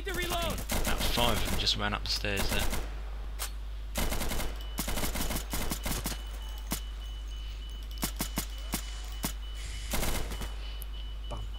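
Gunshots crack in rapid bursts, close and sharp.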